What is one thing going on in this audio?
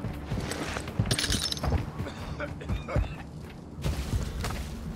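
Footsteps thud on the ground at a quick pace.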